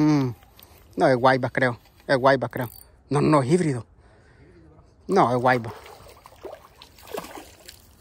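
A fishing reel whirs as a line is wound in.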